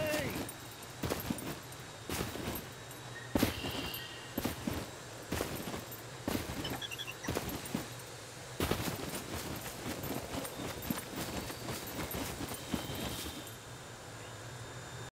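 Footsteps rustle through grass and brush at a steady walking pace.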